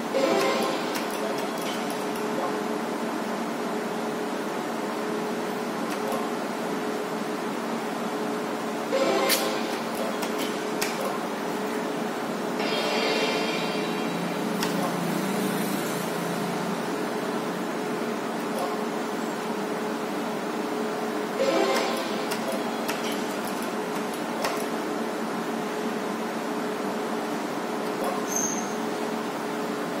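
A slot machine plays jingling electronic tunes as its reels spin.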